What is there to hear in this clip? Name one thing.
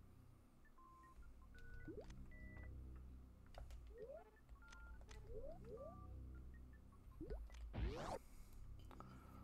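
Short electronic beeps and rising chirps play from a video game.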